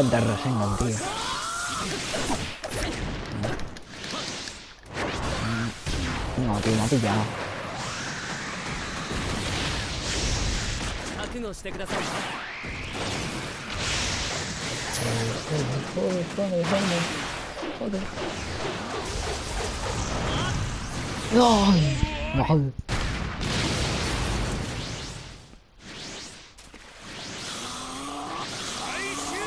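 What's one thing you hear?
Fighting game characters clash with loud punches and blasts of energy.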